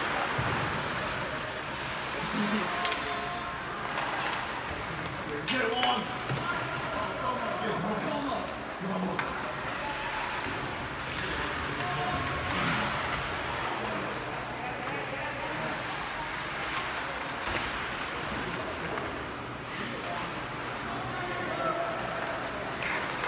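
A crowd of spectators murmurs and calls out in a large echoing arena.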